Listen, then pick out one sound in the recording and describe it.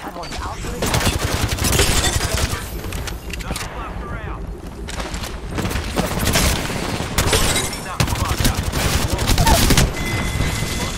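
Guns fire in rapid bursts, loud and close.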